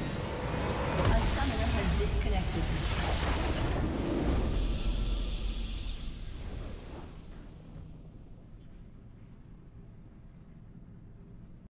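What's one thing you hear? A swelling game victory fanfare plays and slowly fades.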